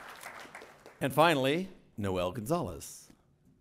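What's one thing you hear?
A man speaks into a microphone in an echoing hall.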